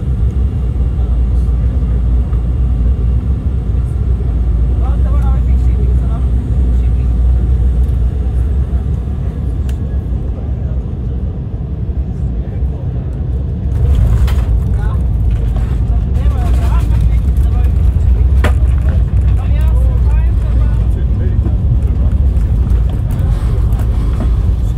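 An aircraft cabin rumbles steadily with loud, deep engine noise.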